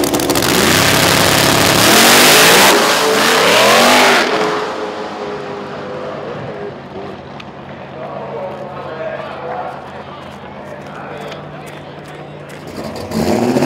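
A drag racing car launches at full throttle and roars away into the distance.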